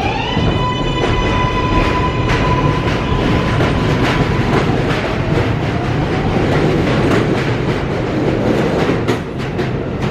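A subway train pulls away from a platform with a loud rumble and rattle.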